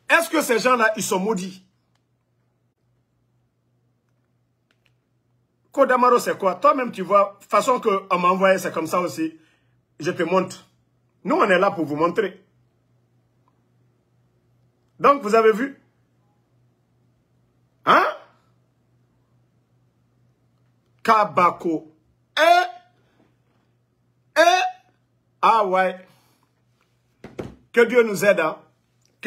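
A man talks with animation, close to a phone microphone, in short bursts with pauses.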